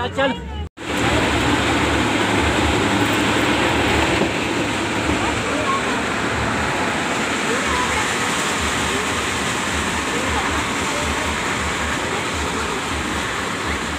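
A crowd murmurs steadily outdoors.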